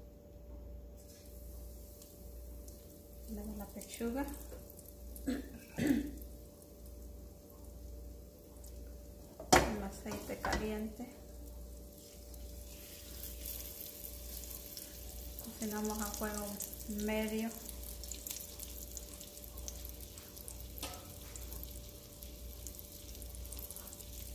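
Oil sizzles softly in a pan.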